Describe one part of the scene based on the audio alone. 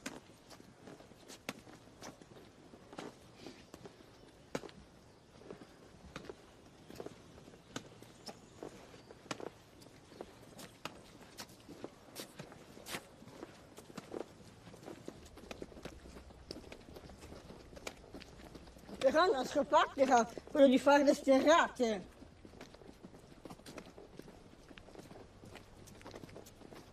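Footsteps crunch on a path.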